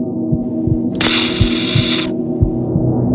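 A stud welder fires with a sharp, sizzling crackle.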